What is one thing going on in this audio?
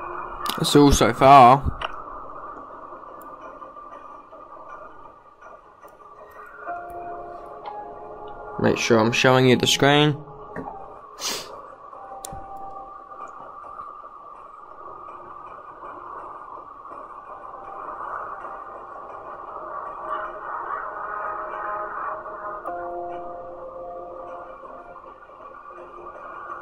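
Soft game music plays steadily.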